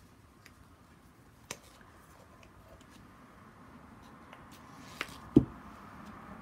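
A small bottle knocks down onto a table.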